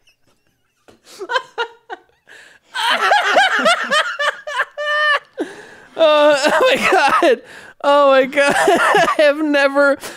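A man laughs loudly into a close microphone.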